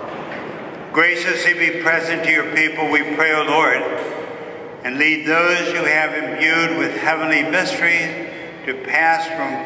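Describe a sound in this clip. A man chants slowly through a microphone in a large echoing hall.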